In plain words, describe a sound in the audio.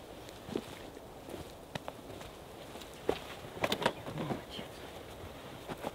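Footsteps crunch on dry forest ground.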